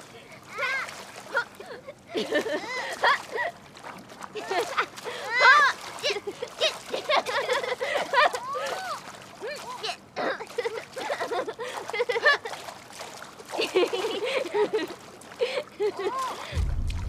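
Children shout and laugh.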